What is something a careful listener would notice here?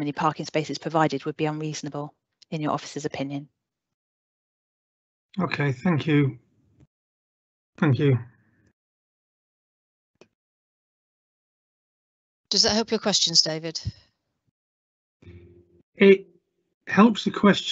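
A woman speaks calmly through an online call, with pauses.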